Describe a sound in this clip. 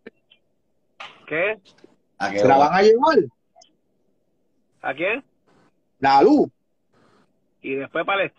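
A young man talks with animation through a phone call.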